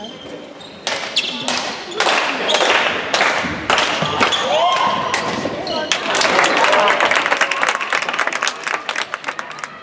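A ball bounces on a hard floor in an echoing hall.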